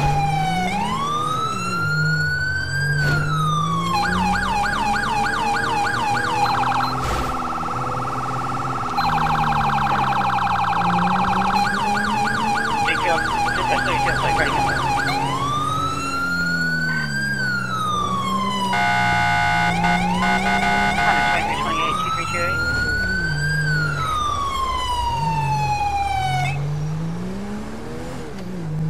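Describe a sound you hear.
A car engine hums and revs as it drives.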